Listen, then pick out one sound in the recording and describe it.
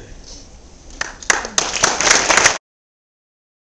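An audience applauds.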